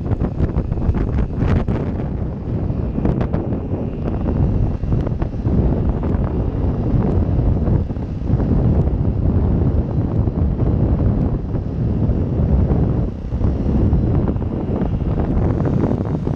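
A motorcycle engine hums steadily up close while riding.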